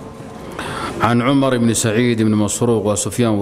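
A man reads aloud in a steady chanting voice into a microphone.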